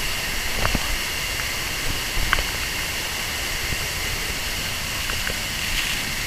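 A waterfall roars steadily close by.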